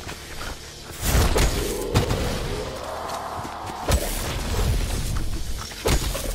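A gun fires several loud, booming shots.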